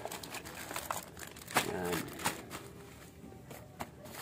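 Plastic wrapping rustles and crinkles as it is handled.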